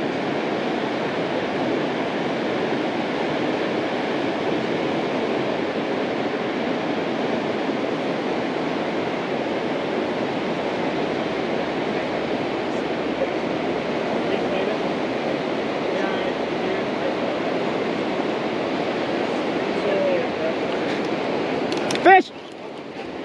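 A fast river rushes and churns steadily nearby.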